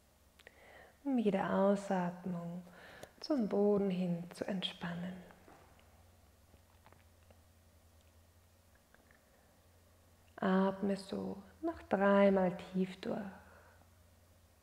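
A woman speaks calmly and softly, close to a microphone.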